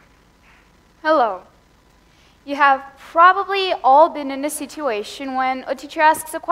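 A young woman speaks with animation through a microphone.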